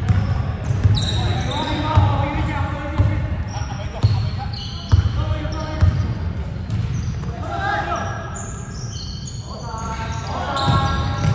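Young women call out and shout to each other across the court.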